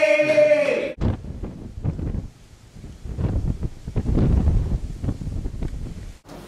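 Wind blusters against a microphone outdoors.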